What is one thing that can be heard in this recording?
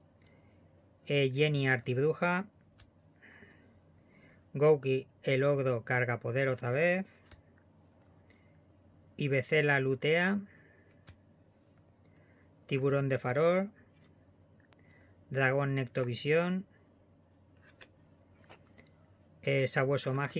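Playing cards slide and rustle softly as they are handled close by.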